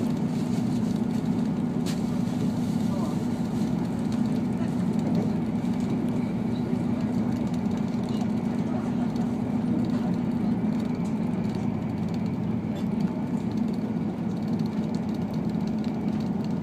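A diesel railcar rumbles along at speed, heard from inside the carriage.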